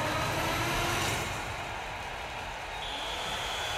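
Slot machine reels stop with a short clunk.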